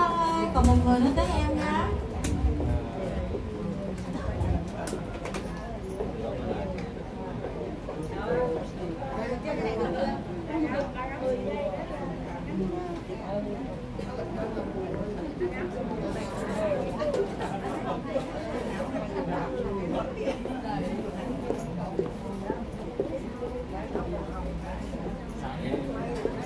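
A man sings into a microphone, heard through loudspeakers in a room.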